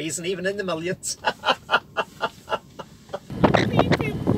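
A woman laughs heartily nearby.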